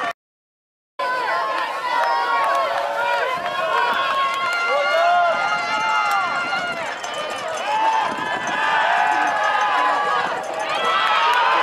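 A large crowd chatters and cheers loudly outdoors.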